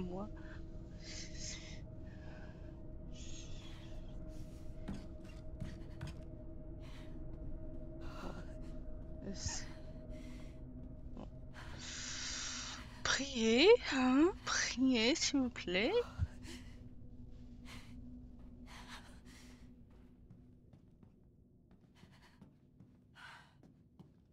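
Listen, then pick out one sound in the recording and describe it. A young woman speaks quietly into a microphone.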